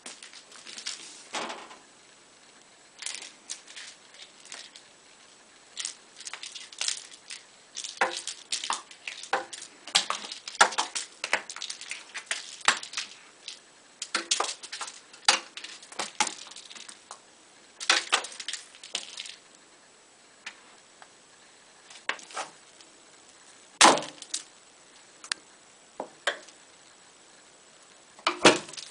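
A cat's paws scrabble and tap on a wooden floor.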